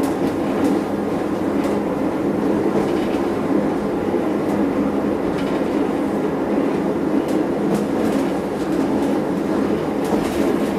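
A train rumbles steadily along a track.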